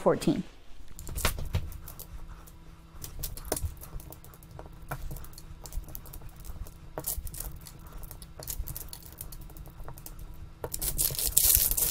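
Plastic tiles clack and click as hands stack them quickly.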